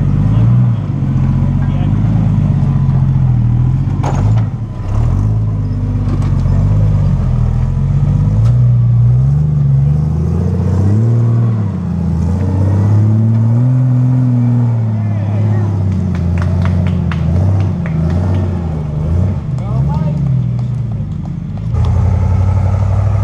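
An engine rumbles and revs as an off-road vehicle climbs over rocks.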